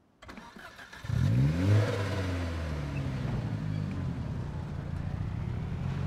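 A car engine starts up and revs as the car drives off.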